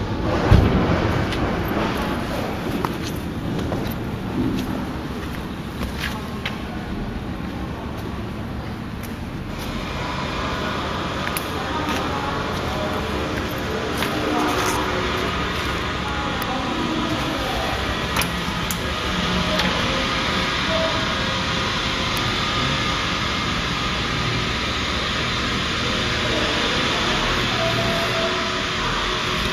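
Industrial machinery hums and rumbles steadily in an echoing hall.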